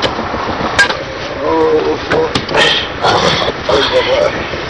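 A man talks in a rough voice nearby.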